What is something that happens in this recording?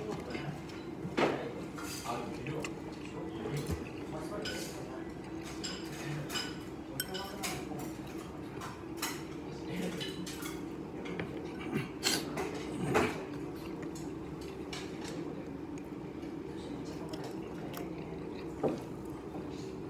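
A man chews and slurps food close by.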